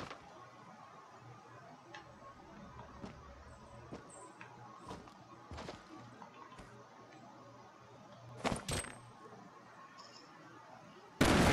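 Footsteps thud on a floor.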